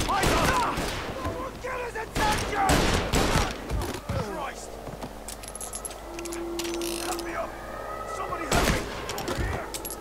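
Pistol shots ring out loudly, one after another.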